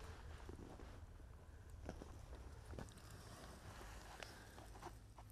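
Hands pluck flowers from the soil with soft snaps.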